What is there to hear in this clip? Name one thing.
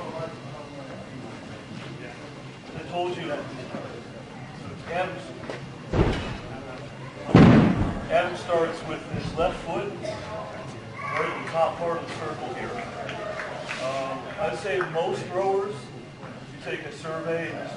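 Several men talk to each other nearby.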